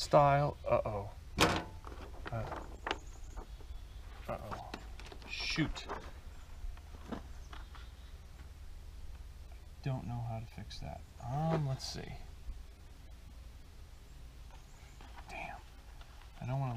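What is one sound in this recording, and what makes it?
Paper rustles and crinkles against a surface.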